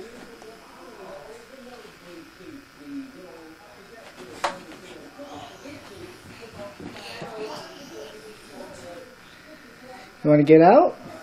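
A toddler babbles softly nearby.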